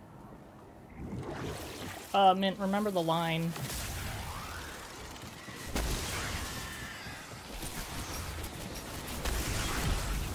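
Game gunfire and crackling energy blasts go off.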